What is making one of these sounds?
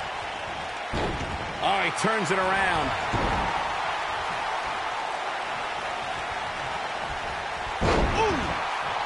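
Bodies slam onto a wrestling ring mat.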